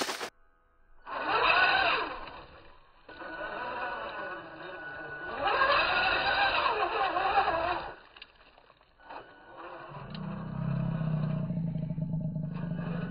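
A small electric motor whines and buzzes as a toy off-road car crawls.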